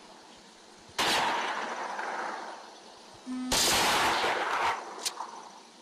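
A rifle fires loud, sharp shots with a ringing echo.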